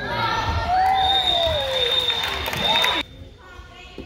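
A referee blows a long whistle.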